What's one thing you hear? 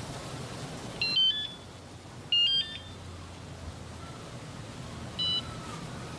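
A bicycle bell rings in short bursts.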